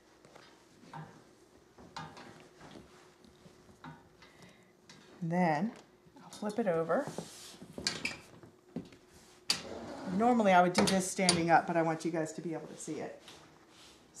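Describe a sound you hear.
Stretchy fabric rustles as it is pulled over a frame.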